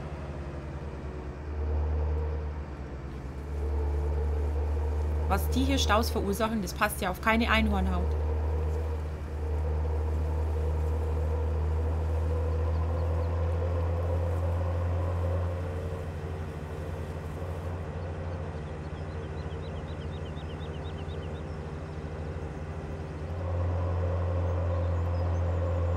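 A tractor engine drones steadily, rising and falling as it pulls a trailer.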